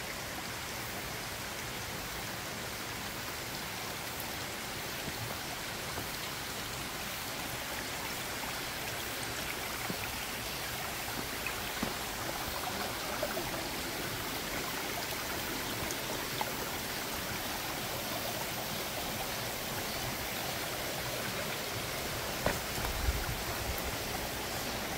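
Footsteps crunch through dry leaves and undergrowth.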